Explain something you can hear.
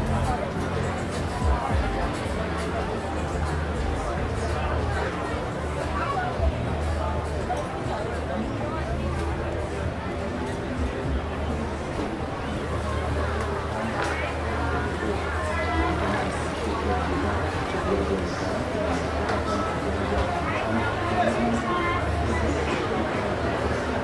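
A crowd of people chatters throughout in a large, echoing hall.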